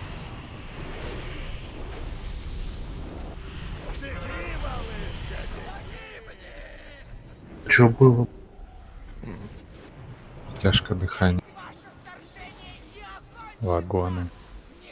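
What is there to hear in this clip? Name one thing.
Magic spells whoosh and crackle in a busy battle.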